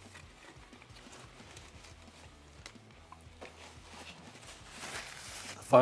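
A paper wrapper rustles and crinkles.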